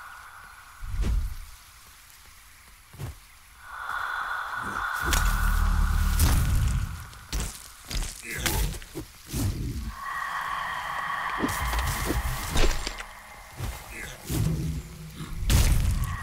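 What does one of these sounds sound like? Magical blasts burst and crackle loudly.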